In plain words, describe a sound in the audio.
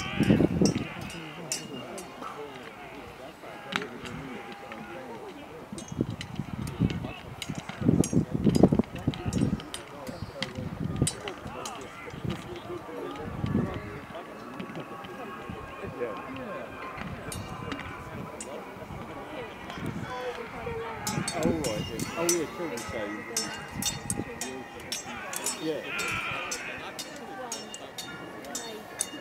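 A crowd of men shout in the distance.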